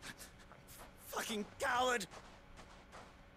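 Another man shouts angrily from a distance.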